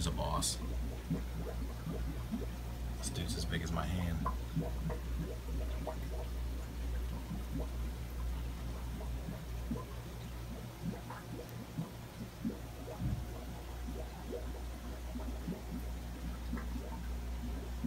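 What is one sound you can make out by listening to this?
An aquarium air pump hums steadily.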